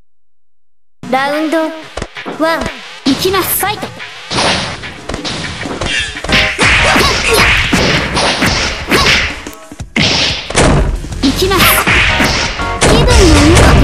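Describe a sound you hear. Fighters in a video game clash with rapid punches, kicks and loud impact blasts.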